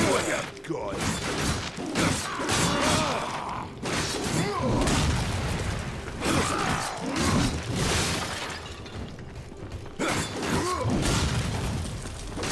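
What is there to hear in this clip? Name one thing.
Loud crashing impacts and booms ring out.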